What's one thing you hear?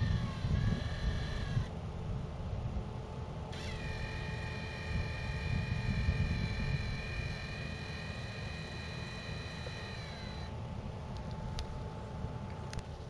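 A small engine runs steadily nearby.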